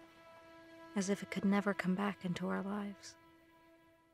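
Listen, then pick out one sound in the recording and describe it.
A young woman speaks softly and calmly.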